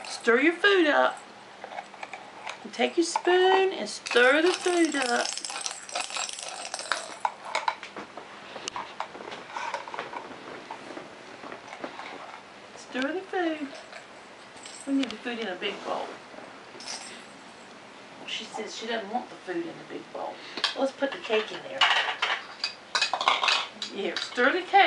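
An elderly woman talks gently and playfully close by.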